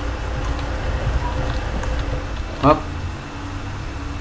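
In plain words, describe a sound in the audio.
A truck engine idles nearby with a low rumble.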